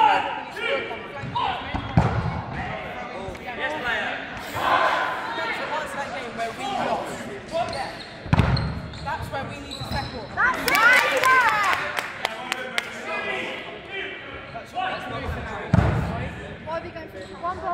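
Young people shout and call out to each other across an echoing hall.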